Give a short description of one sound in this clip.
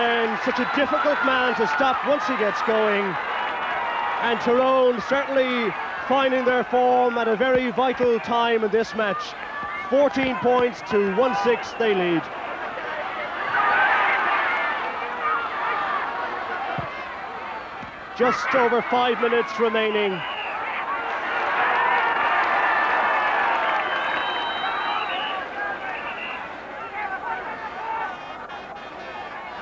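A large crowd cheers and roars in the distance.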